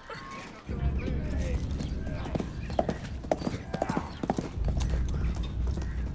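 A horse gallops across packed earth.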